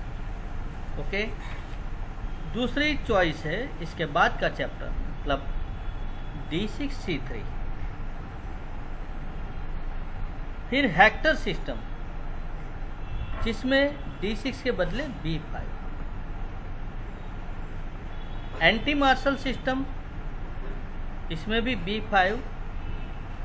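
A middle-aged man speaks calmly in short bursts, with pauses, close to a microphone.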